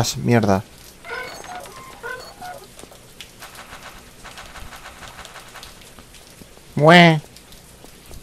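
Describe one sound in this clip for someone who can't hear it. A man talks into a microphone, close by.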